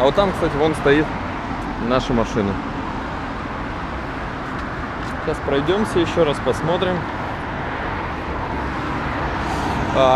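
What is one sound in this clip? Traffic hums steadily along a busy street outdoors.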